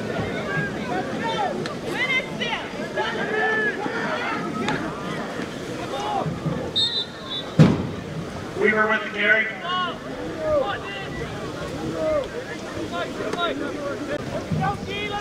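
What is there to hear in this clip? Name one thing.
A crowd of spectators cheers and shouts outdoors throughout.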